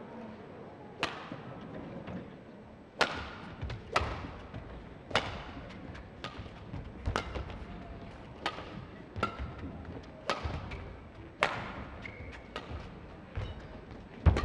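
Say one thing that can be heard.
Badminton rackets strike a shuttlecock back and forth in a rally.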